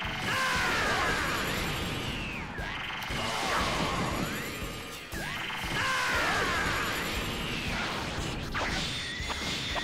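Heavy blows thud and crash in rapid succession.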